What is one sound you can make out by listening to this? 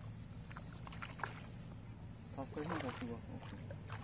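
A hooked bass splashes at the water's surface.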